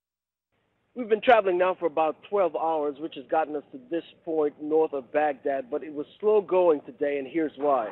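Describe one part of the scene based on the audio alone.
A man talks with animation into a microphone outdoors.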